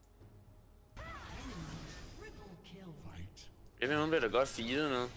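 Magic spells whoosh and zap in a fast fight.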